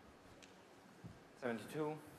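A cue sharply strikes a snooker ball.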